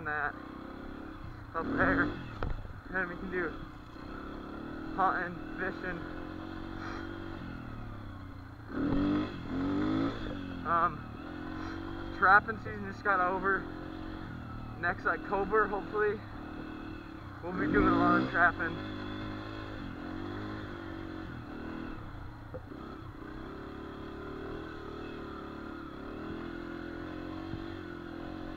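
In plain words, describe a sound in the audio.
A dirt bike engine hums steadily and revs up in bursts, heard close by.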